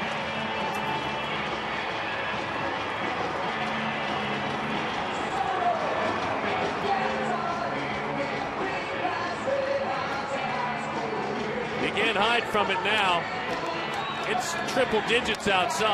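A stadium crowd cheers and applauds steadily.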